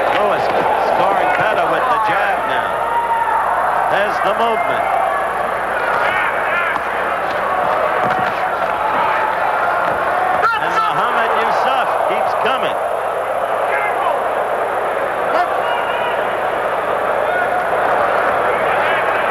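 Boxing gloves thud against a boxer.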